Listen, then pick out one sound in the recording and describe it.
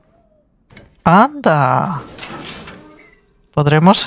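Metal gate doors creak open.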